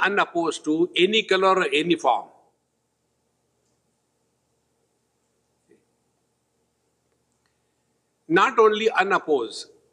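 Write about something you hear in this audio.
An elderly man speaks calmly into a close microphone, pausing between phrases.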